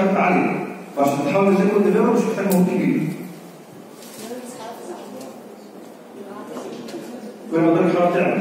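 A young man speaks with animation into a microphone, heard through a loudspeaker in an echoing room.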